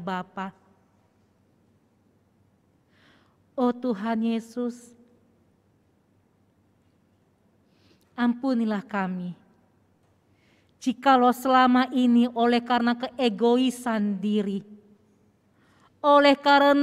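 A young woman speaks slowly and solemnly into a microphone, with pauses.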